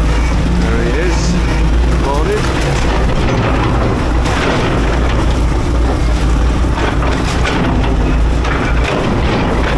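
Scrap metal clanks and scrapes in an excavator's grab.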